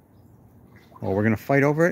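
A duck quacks loudly nearby.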